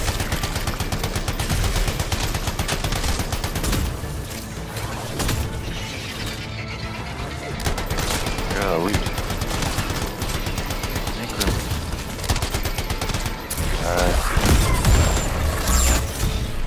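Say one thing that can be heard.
Explosions boom with fiery blasts.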